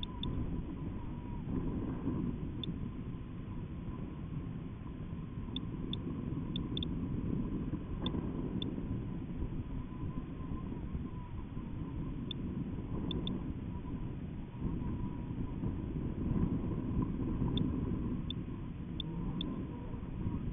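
Wind rumbles and buffets steadily against a swaying payload.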